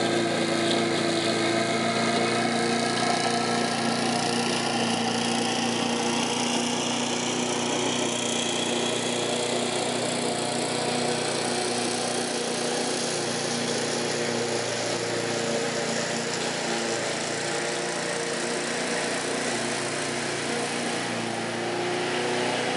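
A lawn mower engine drones steadily nearby, slowly growing fainter as it moves away.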